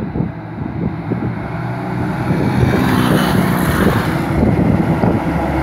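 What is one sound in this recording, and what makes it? A motorbike engine buzzes as it rides past.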